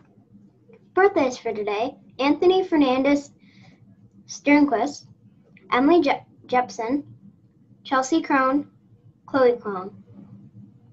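A young girl speaks calmly and close to a microphone, in short phrases with pauses.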